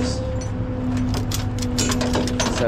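A gloved hand rustles and tugs a fabric strap against a metal trailer.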